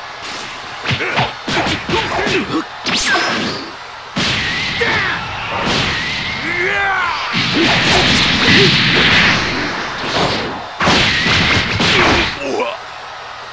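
Heavy punches and kicks land with sharp thuds.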